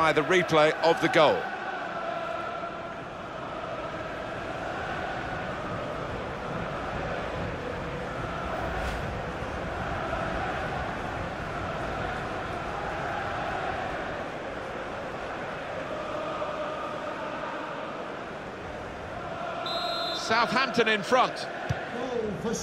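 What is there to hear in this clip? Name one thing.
A large stadium crowd cheers and chants loudly.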